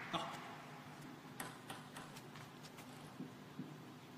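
A table tennis ball bounces on a hand before a serve.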